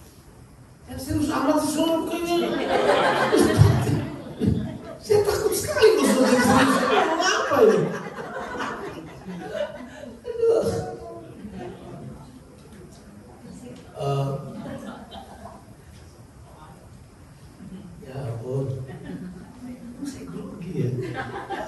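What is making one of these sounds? A man speaks with animation into a microphone through loudspeakers in an echoing room.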